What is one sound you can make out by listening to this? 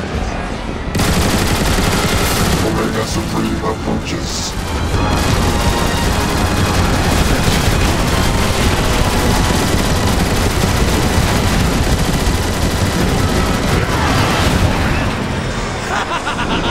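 A heavy turret gun fires a loud continuous stream of shots.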